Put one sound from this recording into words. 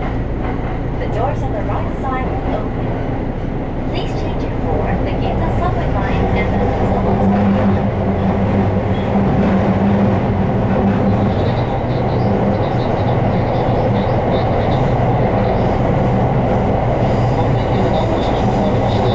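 A train rumbles and hums steadily as it rolls along.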